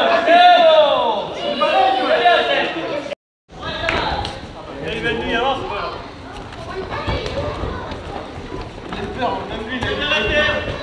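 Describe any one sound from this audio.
Bodies thud onto floor mats as people are thrown.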